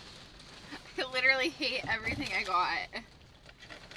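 A young woman laughs and talks with animation close by.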